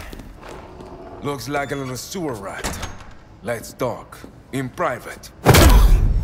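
A man speaks menacingly, close by.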